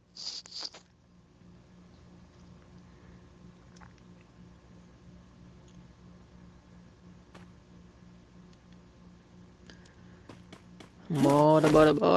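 Footsteps patter quickly and softly on a hard floor.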